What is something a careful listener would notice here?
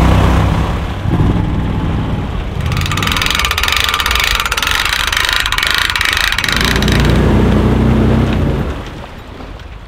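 A vehicle engine rumbles through water.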